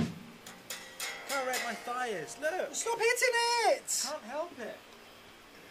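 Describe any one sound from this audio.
An electric guitar plays sliding, bending notes.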